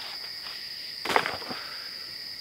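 A plastic container thuds onto the ground nearby.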